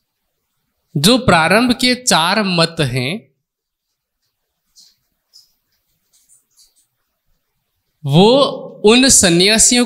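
A man sings slow, drawn-out phrases through a microphone, with pauses between them.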